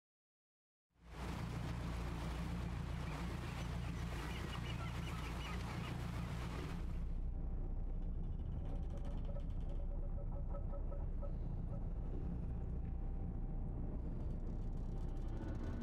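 A boat engine rumbles low and steadily.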